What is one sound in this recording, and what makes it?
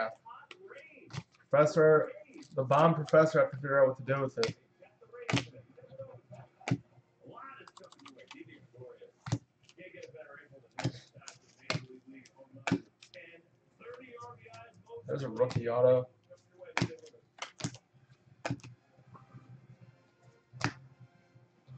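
Trading cards flick and snap as they are shuffled by hand.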